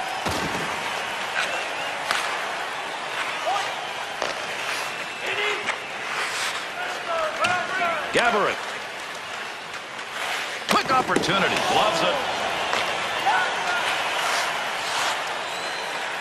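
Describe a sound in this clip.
Hockey sticks knock against a puck now and then.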